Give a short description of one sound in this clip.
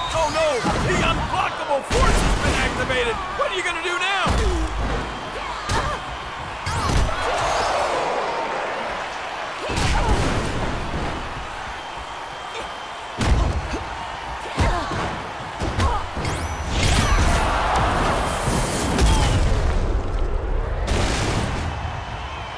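Punches and body slams land with heavy thuds.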